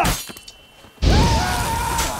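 Flames whoosh and roar in a burst.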